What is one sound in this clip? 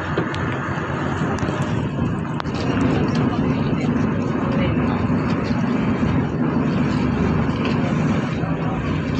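Waves splash against a boat's hull.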